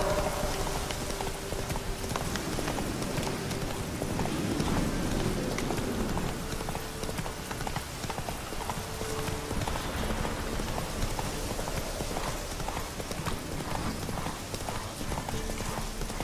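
Horse hooves thud rhythmically on soft ground.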